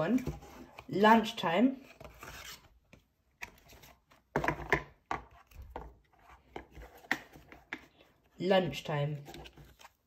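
Cardboard books scrape and knock as they slide out of a box.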